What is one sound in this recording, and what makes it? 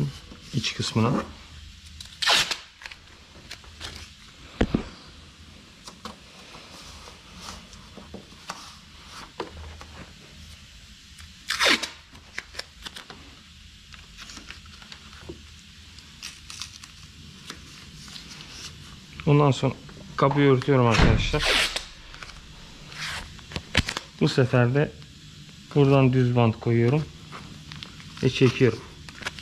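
Masking tape rips as it is pulled off a roll.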